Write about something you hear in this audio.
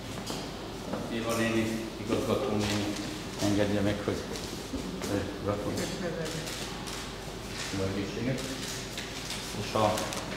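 A man speaks with animation through a microphone in an echoing hall.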